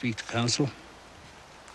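An older man speaks in a low, quiet voice.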